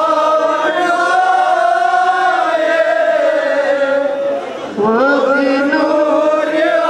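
A young boy sings a mournful chant loudly into a microphone.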